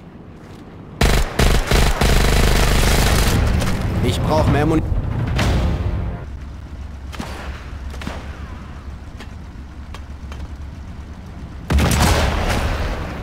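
A rifle fires a loud shot.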